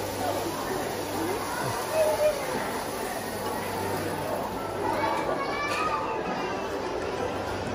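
Arcade machines play jingles and music.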